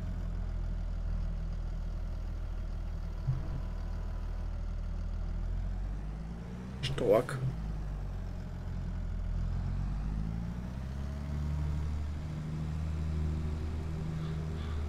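A tractor engine rumbles steadily and revs up and down.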